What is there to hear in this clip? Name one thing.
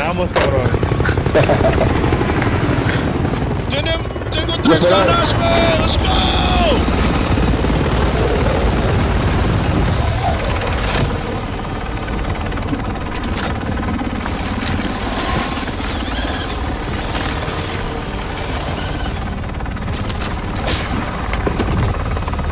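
A helicopter's rotor thumps loudly overhead.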